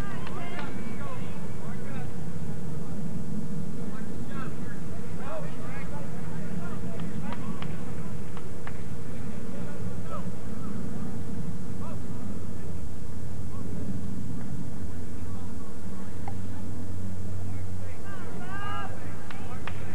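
Young women shout to each other across an open field, heard from a distance.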